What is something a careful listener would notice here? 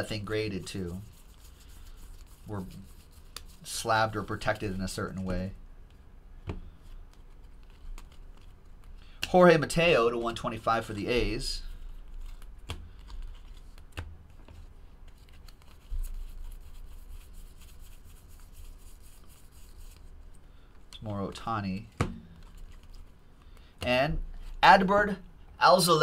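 Cards flick and rustle as they are shuffled.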